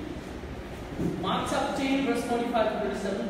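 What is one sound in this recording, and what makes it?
A young man speaks loudly in an echoing room.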